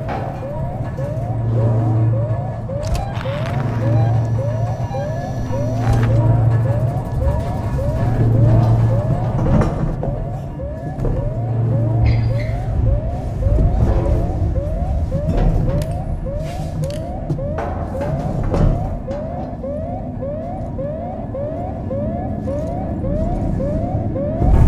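A motion tracker chirps in quick, even, rising beeps.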